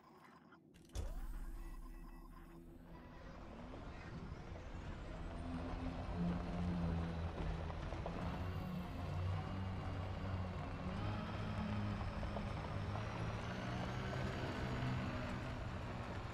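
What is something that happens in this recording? A spacecraft engine hums low and steadily, slowly building in strength.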